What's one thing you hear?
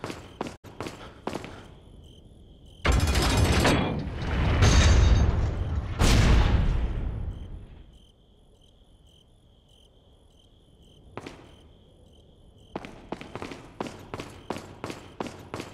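Footsteps clack on a hard stone floor.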